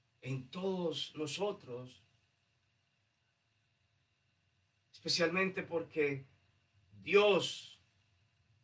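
A man speaks calmly and clearly into a microphone in a small room.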